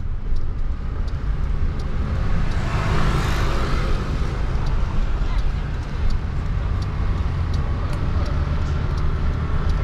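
A car engine hums with a steady low road rumble from inside the car.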